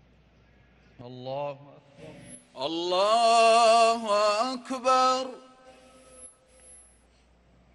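A man chants a call through a loudspeaker, echoing across a large open space.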